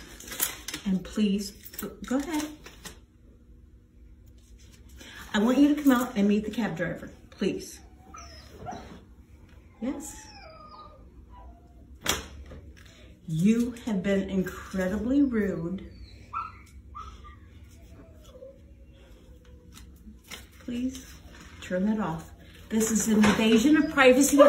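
A middle-aged woman speaks firmly and tensely nearby.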